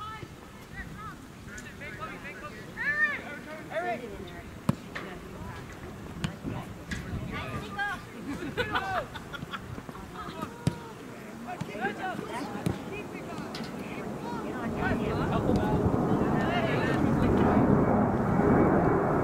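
Young players shout to each other outdoors across an open field.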